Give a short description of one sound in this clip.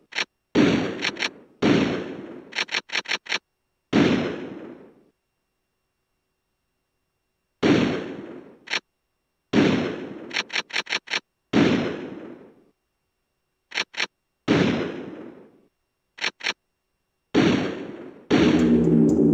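Game menu sounds click and chime as options are selected.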